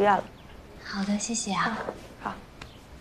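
A young woman answers briefly and softly nearby.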